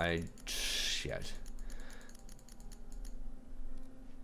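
A combination lock's dial clicks as it turns.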